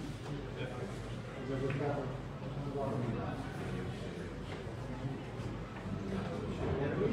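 Several men murmur and talk nearby in a room.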